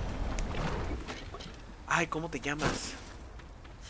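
A man talks into a close microphone in short bursts.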